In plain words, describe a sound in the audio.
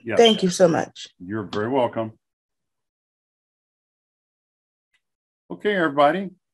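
A middle-aged man speaks calmly over an online call, pausing between phrases.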